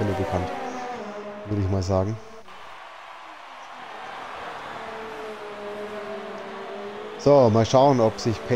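Racing car engines whine at high revs, shifting up and down in pitch.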